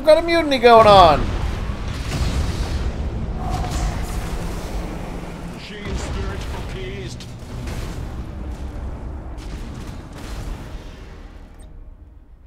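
Laser weapons fire in quick bursts.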